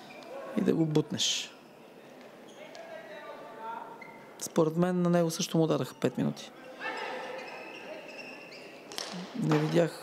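Hockey sticks smack a ball in a large echoing hall.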